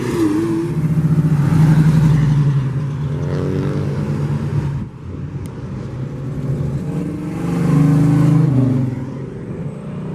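A classic V8 muscle car accelerates past with a deep rumble.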